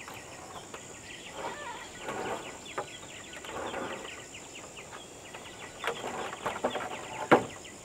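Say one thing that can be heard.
Footsteps thud on wooden beams.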